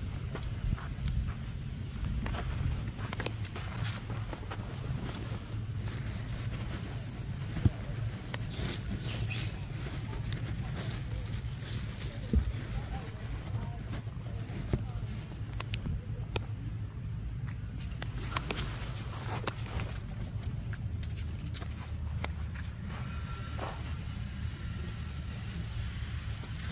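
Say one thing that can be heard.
A monkey's feet patter and rustle over dry leaves and dirt.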